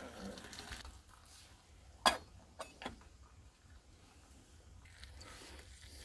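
A metal lid clanks onto a pot.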